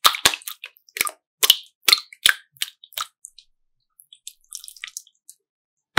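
Hands squish and squeeze soft slime wetly.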